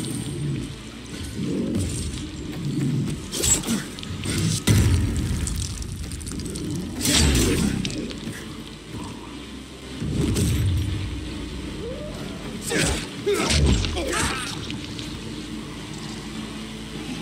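Zombies growl and snarl nearby.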